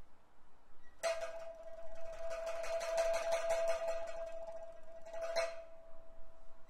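A woman sings in a high, drawn-out operatic voice.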